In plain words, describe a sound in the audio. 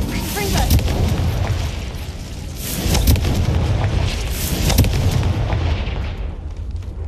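Fiery magic blasts burst and crackle in quick succession.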